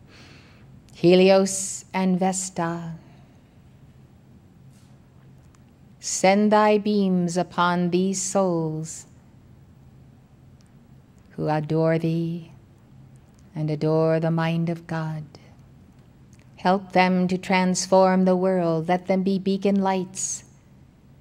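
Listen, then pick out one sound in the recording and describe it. A woman speaks slowly and solemnly into a microphone, with long pauses between phrases.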